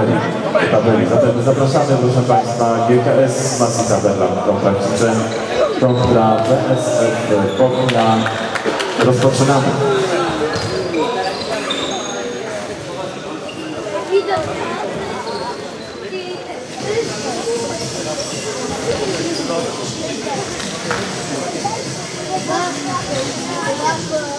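A ball thuds as players kick it in a large echoing hall.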